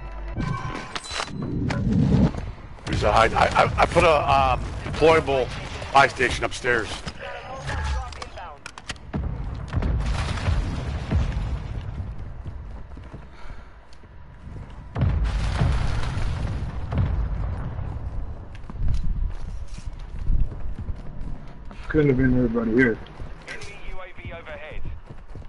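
Gunfire from a game rings out in bursts.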